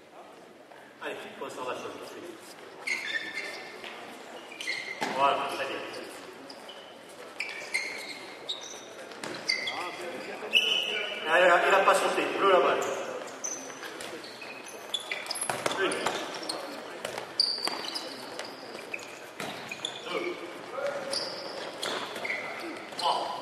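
Young players shout and call out across an echoing hall.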